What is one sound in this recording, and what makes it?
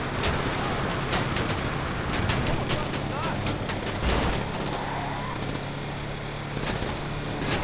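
A car passes by close.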